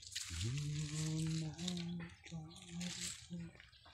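Leaves rustle as a hand pushes through a leafy vine.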